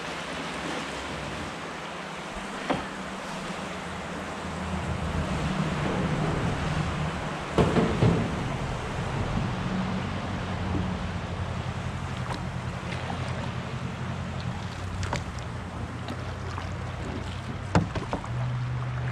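Wind blows across the water outdoors.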